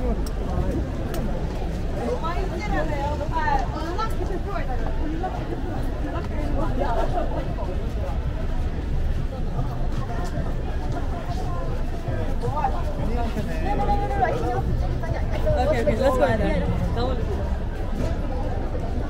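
A busy street crowd chatters all around.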